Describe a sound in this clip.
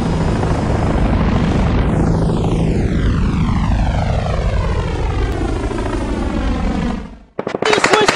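Helicopter rotors thump loudly as helicopters fly close past.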